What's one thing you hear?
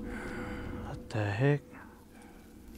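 A man groans loudly in pain.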